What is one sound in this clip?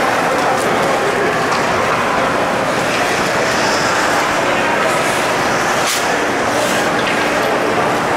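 A crowd chatters and cheers in a large echoing rink.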